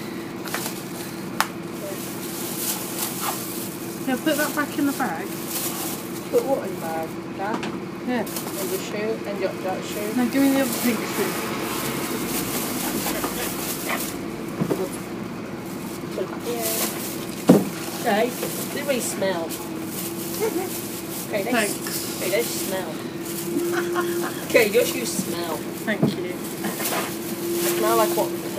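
A bus engine idles with a steady low hum close by.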